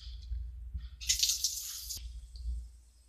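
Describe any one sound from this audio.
Water runs briefly from a tap.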